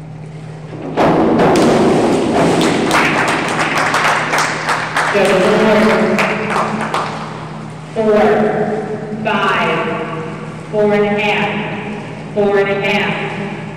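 A crowd cheers and applauds in an echoing hall.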